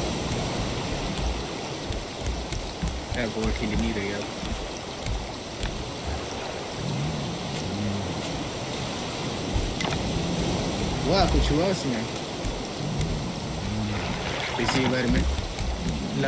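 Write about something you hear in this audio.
Waves lap softly around a raft.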